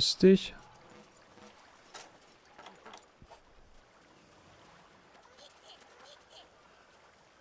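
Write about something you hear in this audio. Water splashes softly as figures wade through it.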